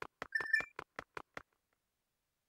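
Game footsteps patter quickly, with bright chiming tones, then go silent.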